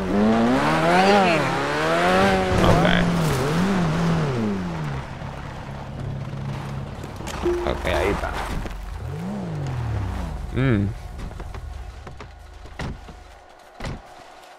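A car engine revs hard and whines as it speeds up and slows down.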